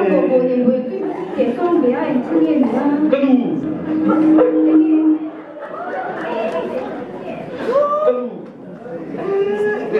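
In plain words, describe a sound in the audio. A young woman speaks emotionally into a microphone over loudspeakers in a large echoing hall.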